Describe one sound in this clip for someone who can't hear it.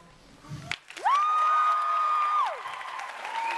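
A young man sings a high note that swoops up and later slides down, heard through a microphone.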